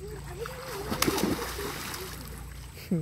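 Water splashes as a child jumps into a pool.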